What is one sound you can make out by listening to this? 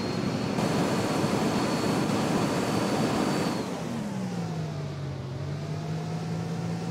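A bus engine roars, then settles to a lower, steady hum.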